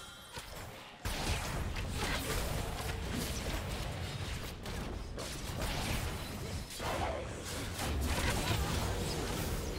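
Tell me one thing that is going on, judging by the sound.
Game combat sounds of blades striking and spells bursting play loudly.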